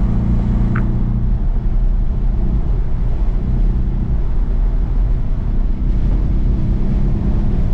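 A car engine hums low and steady from inside the cabin.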